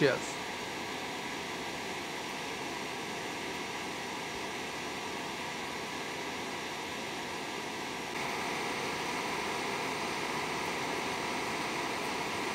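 A gas torch roars steadily at close range.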